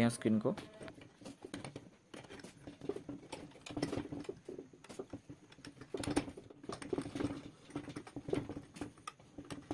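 Metal clamp screws click and rattle as a clamp is tightened by hand.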